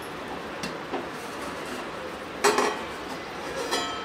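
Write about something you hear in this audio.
A metal bowl clinks against the rim of a metal pot.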